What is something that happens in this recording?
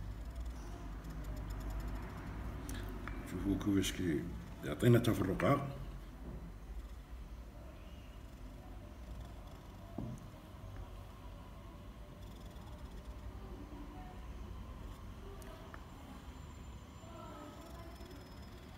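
A small blade scrapes and shaves softly at close range.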